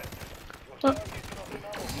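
Pistols fire a quick burst of shots.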